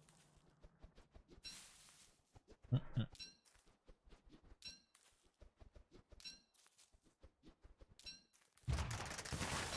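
Small footsteps patter steadily.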